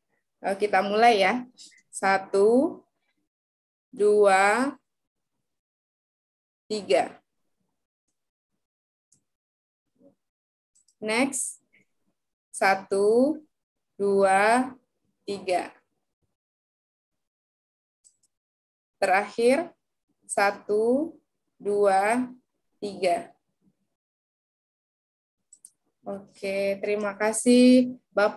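A young woman speaks calmly in short phrases with pauses, heard through an online call.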